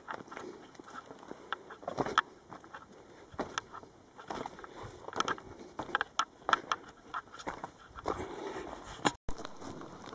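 Footsteps crunch over loose stones and dry leaves.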